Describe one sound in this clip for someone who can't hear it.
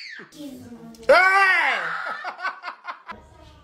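A young girl cries and screams loudly.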